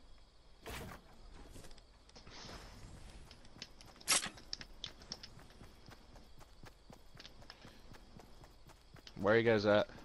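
Footsteps patter over grass.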